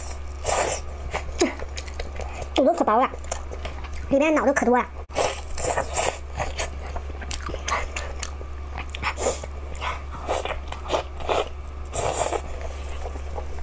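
Soft food squelches and tears apart.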